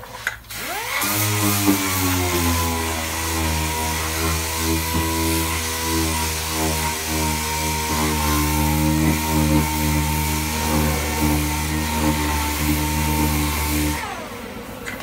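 An electric power tool spins up and whirs steadily up close, then winds down.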